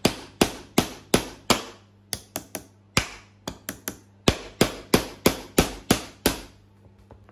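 A hammer strikes a nail into wood with sharp, rapid blows.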